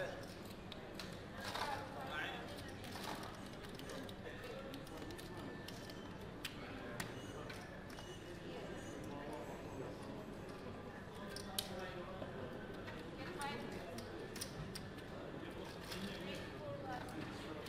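Several adults murmur and talk nearby.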